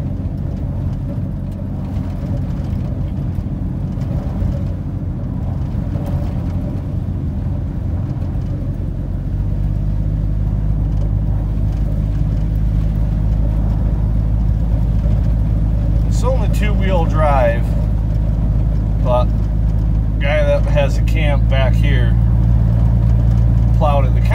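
Tyres rumble over a snowy road.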